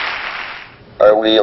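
A computer-generated male voice begins to speak.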